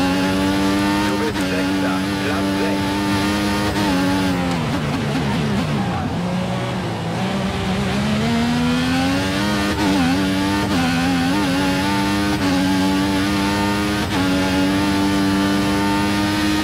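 A racing car engine screams at high revs, dropping sharply for a corner and then rising again.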